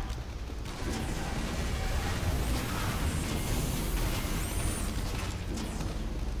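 Gunshots pop in a video game.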